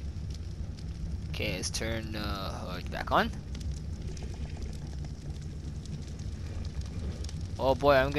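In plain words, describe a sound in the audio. Campfires crackle and hiss steadily.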